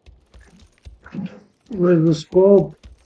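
A man speaks with animation close to a microphone.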